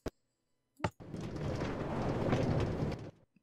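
A minecart rumbles and rattles along rails.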